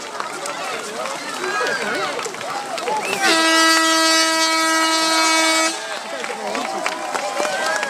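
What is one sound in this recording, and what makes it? Paddles splash in water.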